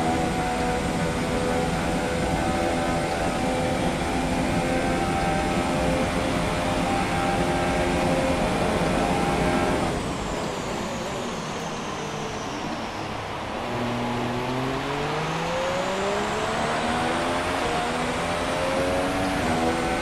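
A racing car engine roars at high revs, dropping in pitch as the car brakes and then climbing again as it speeds up.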